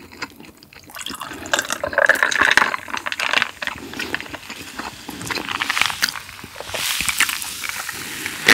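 A fizzy drink pours into a glass with ice and fizzes.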